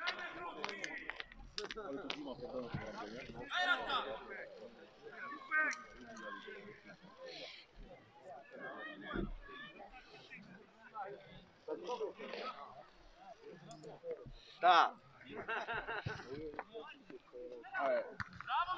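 Men shout and call out across an outdoor football pitch.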